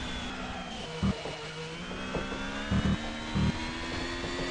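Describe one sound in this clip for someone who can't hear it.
Racing car tyres thump over kerbs a few times.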